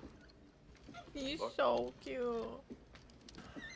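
A young woman speaks with surprise, close to a microphone.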